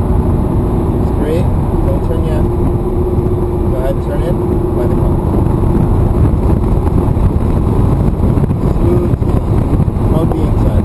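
Tyres hum and rumble on the road.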